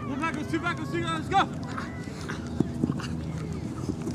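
Footsteps run across artificial turf.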